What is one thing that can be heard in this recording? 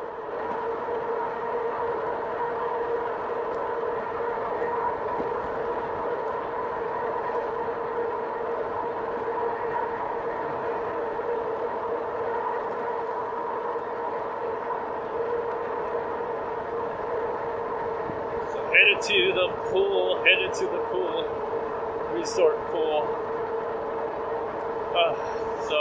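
An electric motor whines steadily at a constant pitch.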